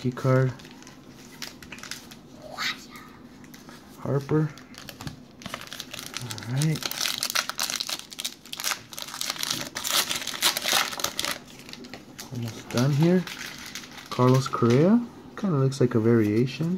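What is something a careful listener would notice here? Trading cards slide against each other as they are shuffled by hand.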